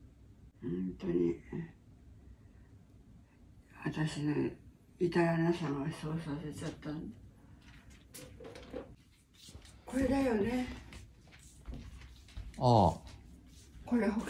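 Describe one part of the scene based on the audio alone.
An elderly woman talks nearby in short bursts.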